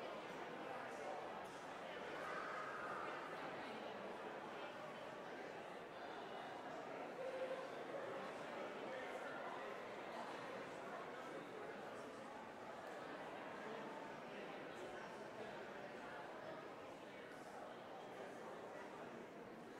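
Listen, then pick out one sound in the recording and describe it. A mixed choir sings together in a large echoing hall.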